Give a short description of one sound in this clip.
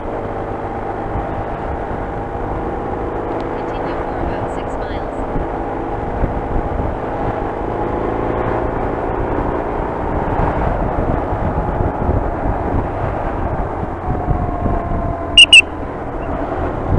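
A motorcycle engine hums steadily while riding along a road.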